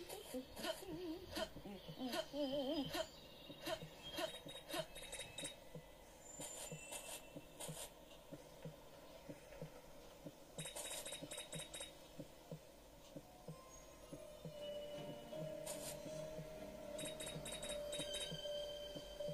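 A tablet game plays short chiming sound effects.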